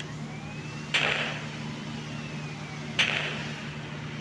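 Explosions boom heavily.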